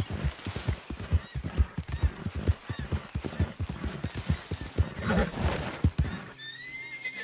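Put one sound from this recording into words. Horse hooves thud quickly on soft ground.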